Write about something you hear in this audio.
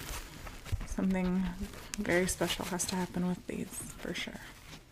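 A young woman speaks softly close to a microphone.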